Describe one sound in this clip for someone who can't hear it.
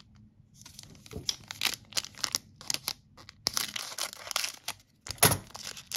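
Scissors snip through a foil wrapper.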